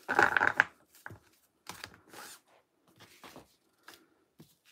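A card is set down on a table with a light tap.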